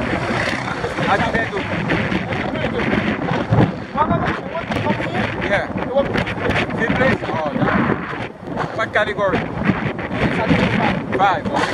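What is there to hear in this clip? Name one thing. Wind rushes loudly over a microphone outdoors.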